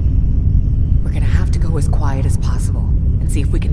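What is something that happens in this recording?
A young woman speaks in a low, serious voice.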